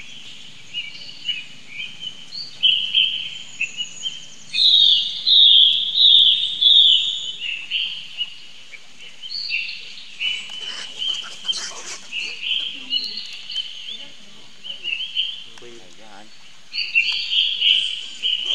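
Monkeys squeal and chatter in high, shrill bursts.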